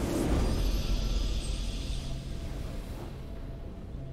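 A triumphant game victory fanfare rings out and fades.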